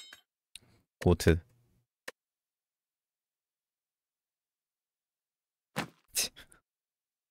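A young man speaks in short bursts into a close microphone.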